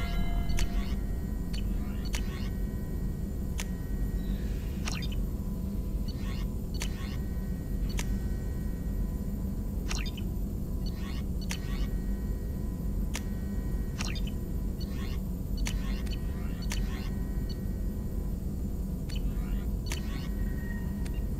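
Soft electronic whooshes sweep up with menu changes.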